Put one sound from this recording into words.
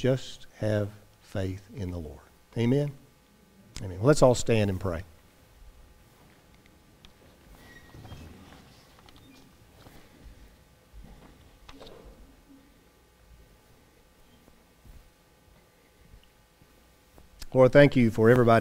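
A middle-aged man speaks calmly through a headset microphone in an echoing hall.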